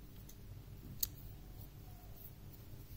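Scissors snip through yarn with a short click.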